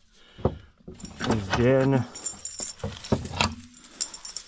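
A metal chain rattles and clinks.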